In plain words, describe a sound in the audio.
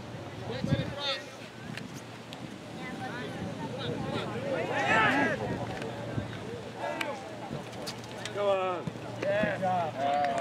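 Young players shout to one another outdoors on an open field.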